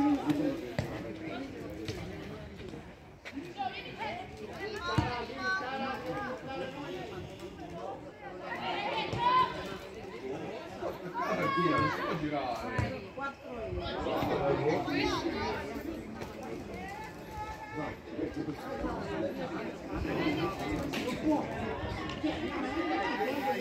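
Young players shout and call out to each other across an open outdoor pitch.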